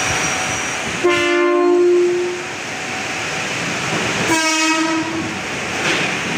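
A train horn blares twice.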